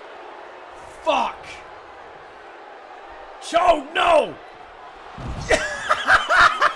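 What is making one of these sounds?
A young man exclaims excitedly into a close microphone.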